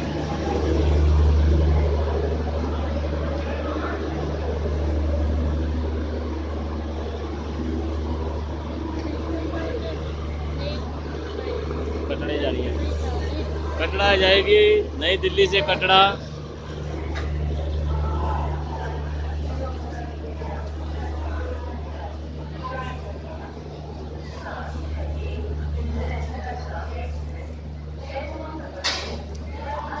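A crowd of people murmurs and chatters in a large echoing space.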